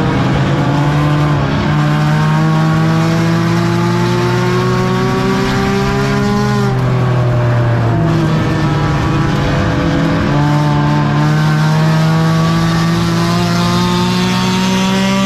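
A race car engine roars loudly from inside the cabin, revving up and down.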